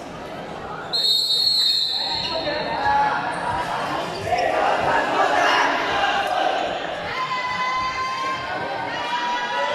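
A team of young men shouts together in a huddle.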